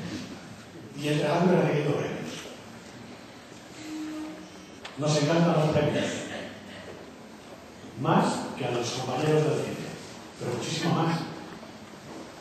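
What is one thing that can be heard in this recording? A middle-aged man speaks slowly and formally into a microphone, with pauses, in an echoing hall.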